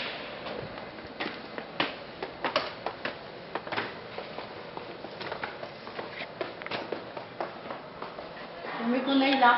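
Footsteps tap on hard stairs and floors.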